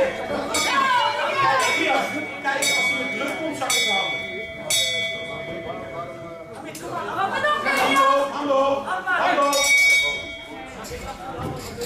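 A man announces loudly over a loudspeaker in an echoing hall.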